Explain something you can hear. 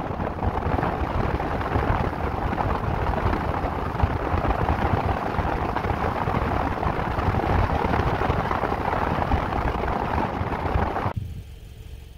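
Wind rushes loudly past a fast-moving car.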